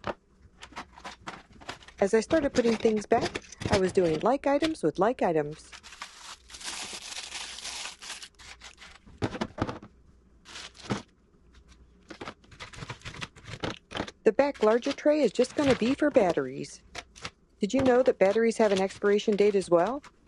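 Plastic trays clatter and knock against a wooden drawer.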